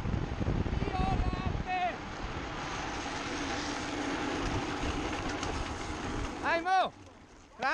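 Tyres squeal while skidding.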